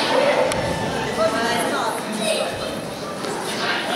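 A small boy speaks close by.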